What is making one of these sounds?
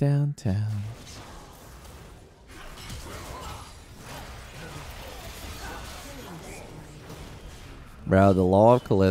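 Spell and combat effects whoosh and crackle from a game.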